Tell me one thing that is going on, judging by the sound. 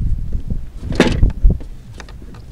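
A fish thumps down onto a plastic board.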